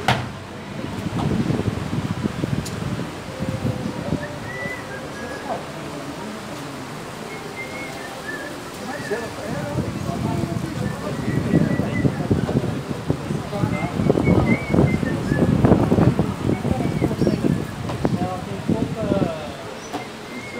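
Men talk casually nearby.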